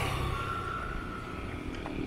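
A motorbike engine hums along the road a short way off.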